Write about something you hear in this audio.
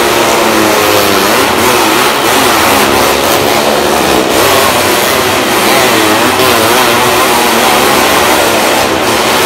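Car and motorbike engines roar loudly as they circle a wooden wall, echoing around the drum.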